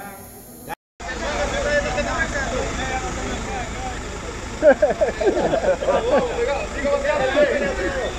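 A crowd of men shout and argue excitedly outdoors.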